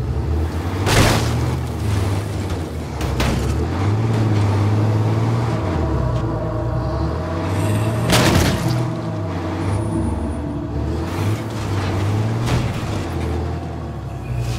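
Tyres crunch over gravel and grass.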